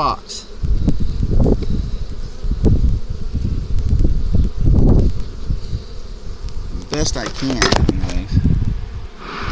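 Bees buzz in a swarm close by.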